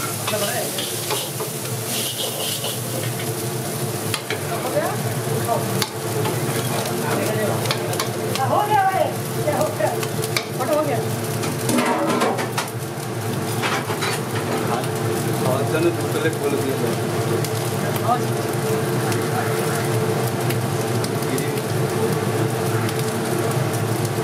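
Rice sizzles in a hot wok.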